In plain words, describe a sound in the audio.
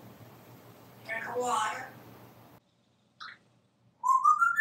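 A parrot chatters and whistles close by.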